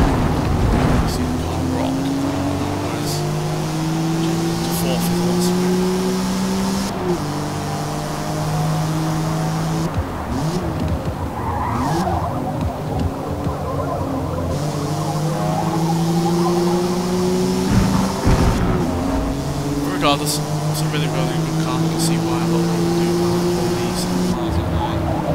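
A car engine revs hard, rising in pitch through the gears.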